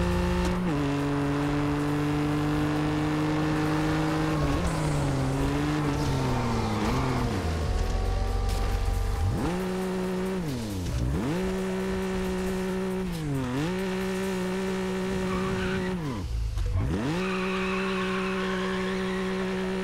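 A sports car engine roars, revving up and dropping with each gear change.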